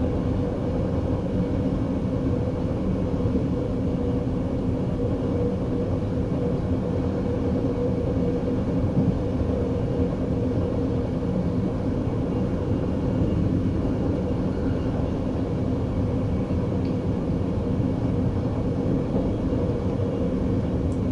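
A train's motor hums steadily.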